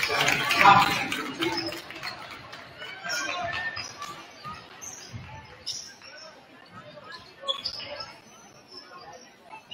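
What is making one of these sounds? A crowd murmurs and cheers in an echoing gym.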